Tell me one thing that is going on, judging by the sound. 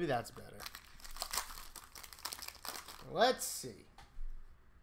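A foil card pack crinkles as it is torn open.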